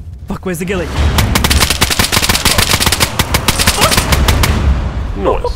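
A rifle fires rapid bursts of shots close by.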